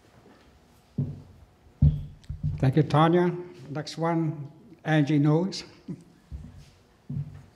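A man speaks at a distance in a room with some echo.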